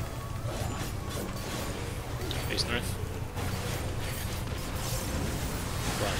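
Magic spell effects whoosh and chime in bursts.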